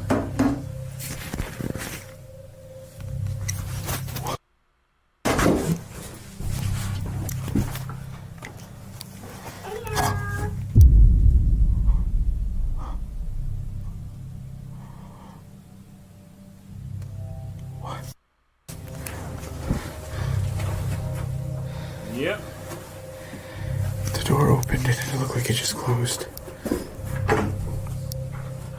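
A man talks into a microphone close by, quietly and with pauses.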